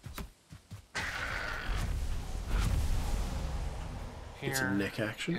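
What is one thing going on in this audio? A magical burst crackles and rushes.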